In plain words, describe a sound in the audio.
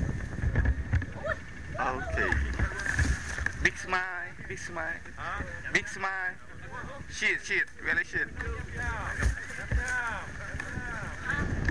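Young men talk outdoors.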